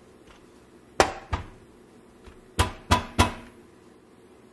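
A hammer taps sharply on plastic several times.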